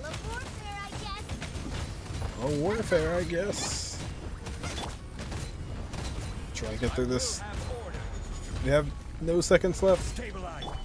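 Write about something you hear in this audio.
Electric attacks crackle and burst in a video game.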